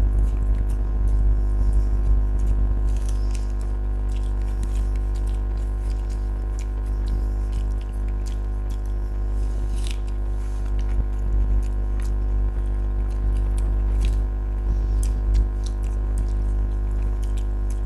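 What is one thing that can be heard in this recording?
Fingers squish and mix soft rice and curry.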